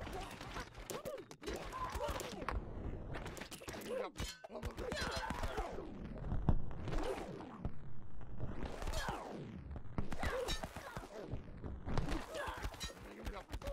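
Volleys of arrows whoosh through the air in a video game battle.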